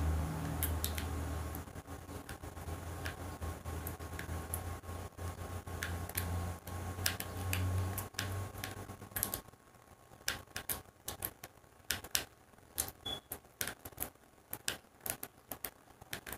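A video game on a television plays short, repeated popping and clicking effects.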